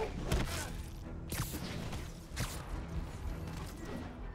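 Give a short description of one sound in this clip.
Air rushes past in quick whooshes.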